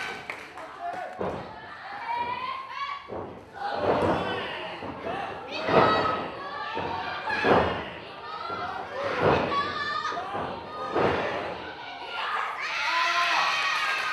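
Young women shout during a wrestling match.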